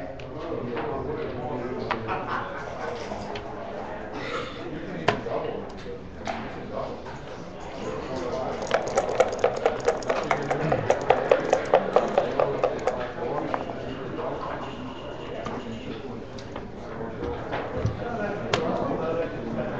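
Wooden checkers click as they are slid and set down on a board.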